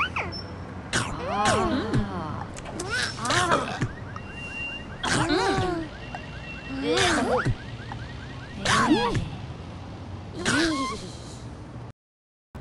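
Cartoon sound effects pop as fruit pieces drop off a stack one by one.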